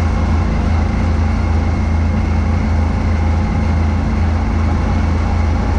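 A snowblower engine drones loudly and steadily close by.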